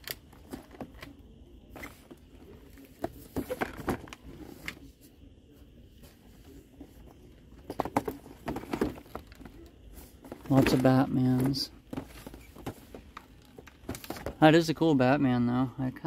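Plastic packaging crinkles and taps under a hand.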